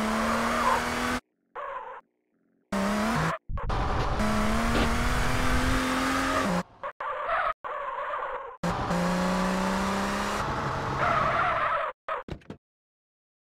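A car engine roars and revs as the car speeds along.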